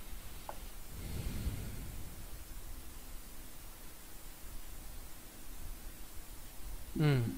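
A man murmurs briefly into a close microphone.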